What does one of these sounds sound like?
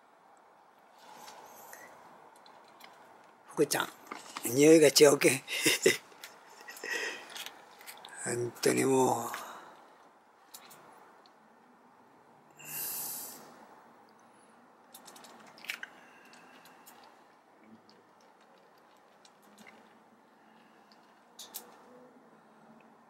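Cats chew and lap food noisily.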